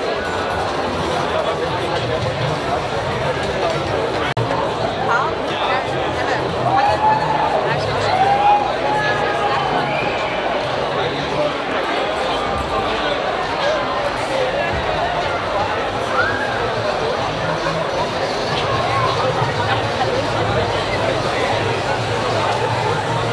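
A large crowd chatters and shouts outdoors all around.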